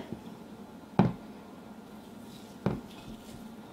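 A spatula taps against a glass bowl while stirring.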